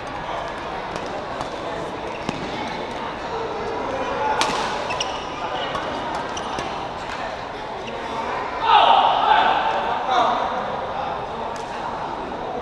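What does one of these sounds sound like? Shuttlecocks are struck with sharp pops of rackets.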